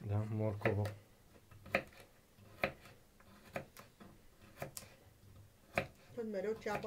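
A knife chops through a carrot onto a wooden board with sharp knocks.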